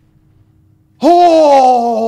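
A young man gasps and exclaims loudly close to a microphone.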